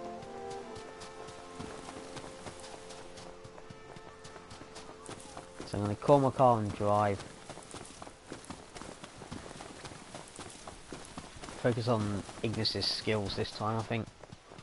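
Footsteps run quickly over sand and grass.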